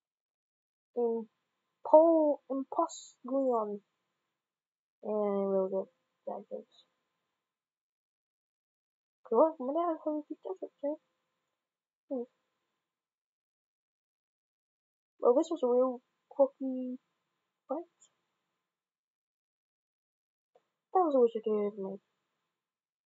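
Cartoon monsters let out short growling cries.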